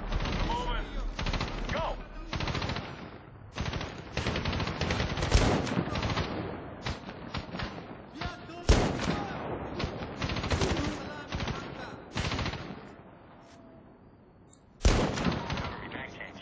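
Gunshots crack in rapid bursts and echo.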